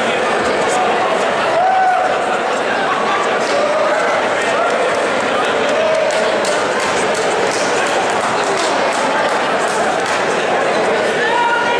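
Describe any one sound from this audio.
A man speaks firmly to two fighters up close.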